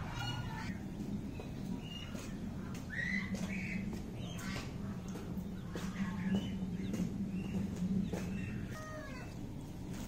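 Chicks peep and chirp close by.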